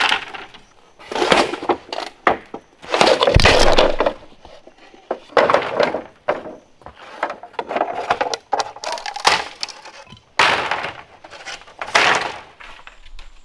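A machete chops into bamboo with sharp blows.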